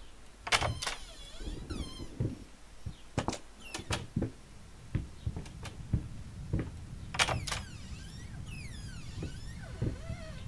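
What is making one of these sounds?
A wooden door creaks slowly open.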